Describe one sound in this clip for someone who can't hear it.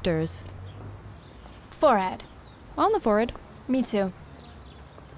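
A young woman speaks briefly and calmly nearby.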